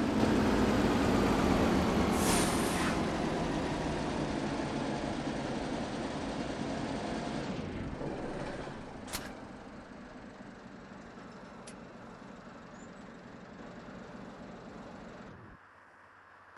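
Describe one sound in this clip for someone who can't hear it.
A bus engine rumbles steadily from inside the cab and slowly fades.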